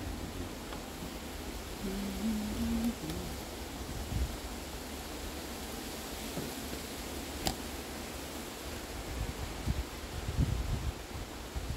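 Wind rumbles outdoors across the microphone.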